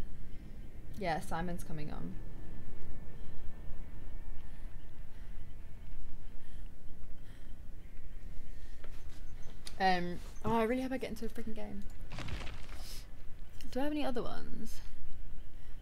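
A young woman speaks casually into a microphone, close by.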